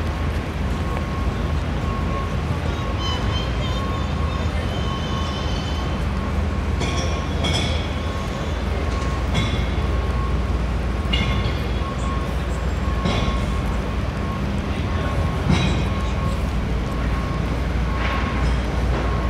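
A pedestrian crossing signal beeps in quick, steady pulses.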